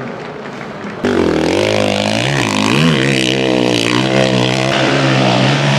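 A motorcycle engine revs hard, rising and falling as the bike climbs.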